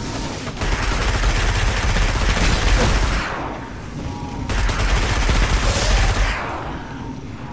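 Loud explosions roar and rumble.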